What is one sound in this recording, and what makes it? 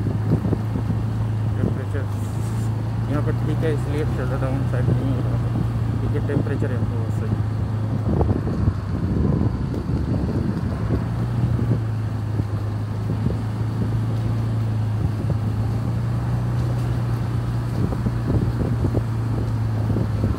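Tyres roll over a wet road.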